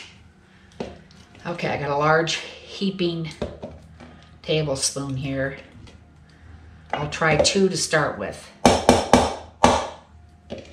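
A metal spoon scrapes and clinks inside a glass jar of mayonnaise.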